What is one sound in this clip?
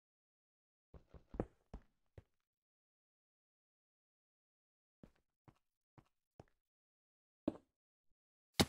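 Footsteps thud on stone and dirt.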